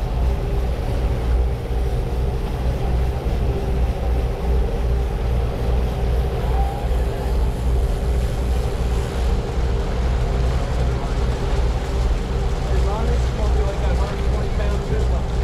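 Water churns and splashes in the wake of a boat.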